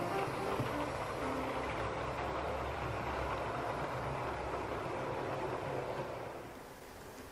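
A model train's coaches rumble along the track.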